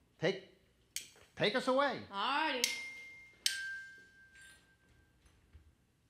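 A metal bar instrument rings with a few struck notes.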